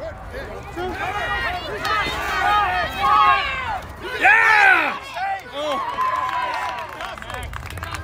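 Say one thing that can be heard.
Spectators cheer and shout outdoors.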